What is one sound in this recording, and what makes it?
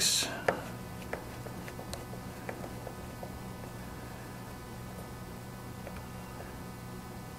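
Small metal parts click and tap as hands handle them.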